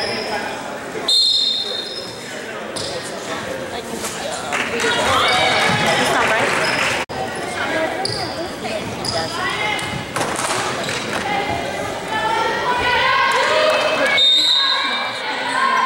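A crowd chatters and cheers in the stands.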